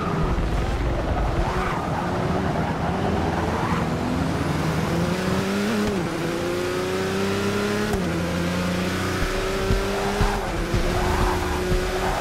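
A race car engine roars loudly, rising in pitch and dropping with each gear change.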